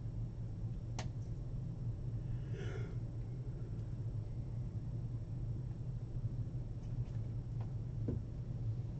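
Small items click and rustle as they are handled.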